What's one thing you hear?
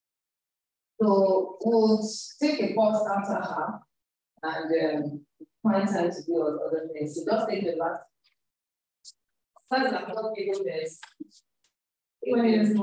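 A young woman speaks into a microphone, heard through an online call.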